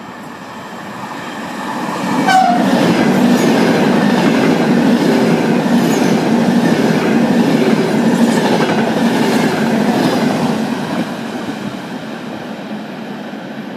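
A high-speed electric train rushes past at speed, its wheels roaring on the rails.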